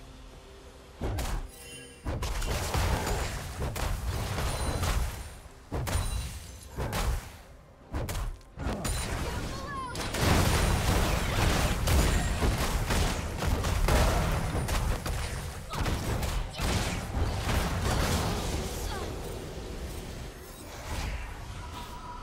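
Video game spells and blows clash in a rapid fight.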